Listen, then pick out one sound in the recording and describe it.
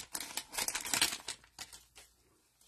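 A plastic wrapper crinkles as hands tear it open.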